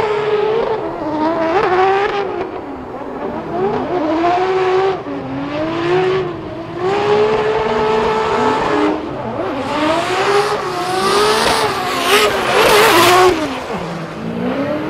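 Tyres screech and hiss as a car drifts on tarmac.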